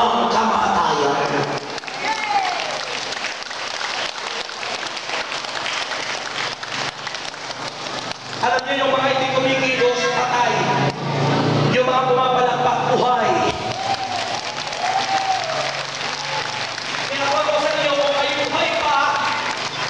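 A crowd claps along in rhythm.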